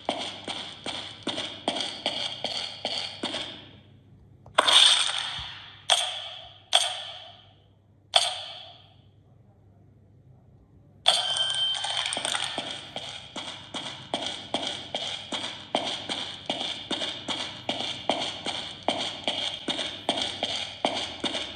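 Quick footsteps tap steadily from a game on a tablet speaker.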